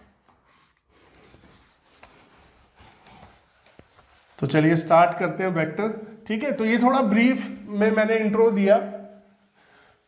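A duster rubs across a whiteboard.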